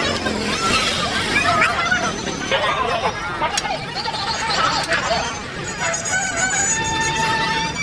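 A crowd murmurs and chatters outdoors all around.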